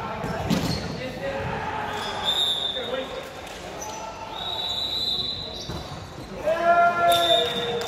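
Young men call out and shout to each other across a large echoing hall.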